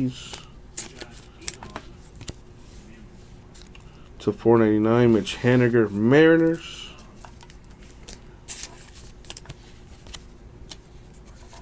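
A foil wrapper crinkles and rips.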